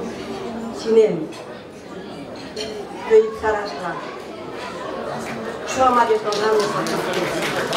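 An elderly woman speaks into a microphone, heard through loudspeakers.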